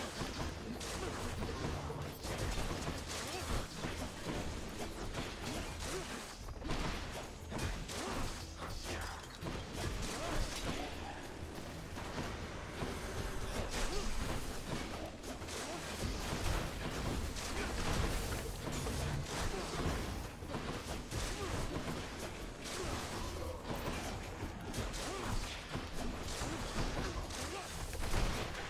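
Game combat sounds of slashing and magic blasts ring out in quick bursts.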